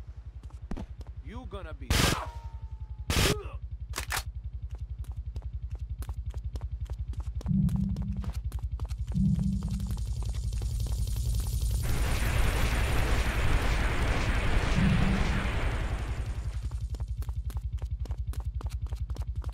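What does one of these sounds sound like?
Footsteps splash quickly through shallow water.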